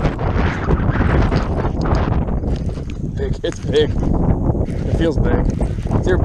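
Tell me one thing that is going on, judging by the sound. A fishing reel clicks as it is handled.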